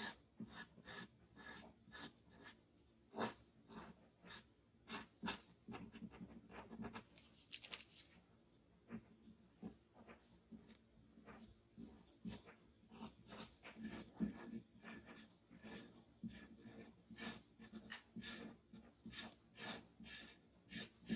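Charcoal scratches and taps on paper in short strokes.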